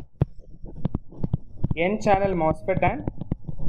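A pen taps and scratches as it writes on a tablet.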